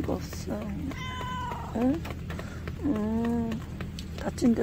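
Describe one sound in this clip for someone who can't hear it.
A cat meows plaintively close by.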